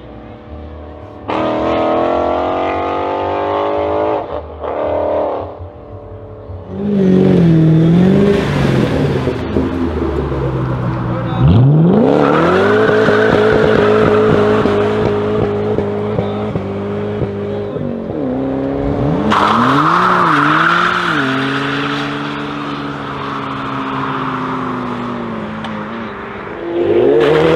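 Tyres screech as they spin on the road.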